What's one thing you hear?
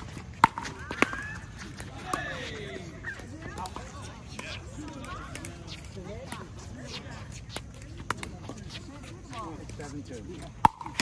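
Men call out and chat on the court.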